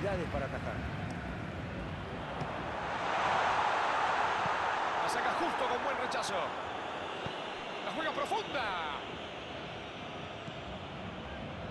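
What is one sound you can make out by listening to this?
A large stadium crowd roars steadily, swelling louder for a few seconds before settling back.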